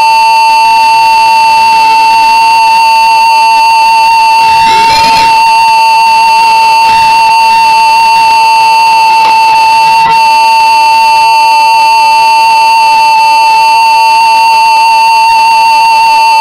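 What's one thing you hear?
A flute plays a long, wavering note, loud and close.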